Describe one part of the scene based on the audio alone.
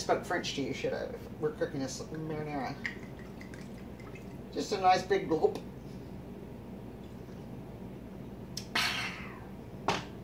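Wine gurgles as it is poured from a bottle.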